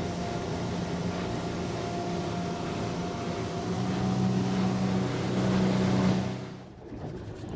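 Water rushes along a speeding motorboat's hull.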